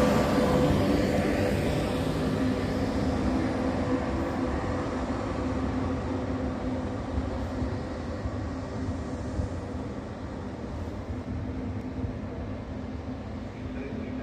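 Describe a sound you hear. A train rumbles along the tracks and slowly comes to a stop, its sound fading.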